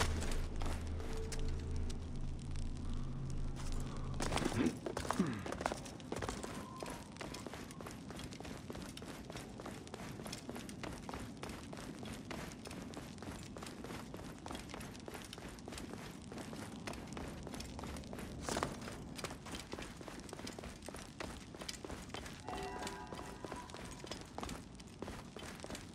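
A burning torch crackles.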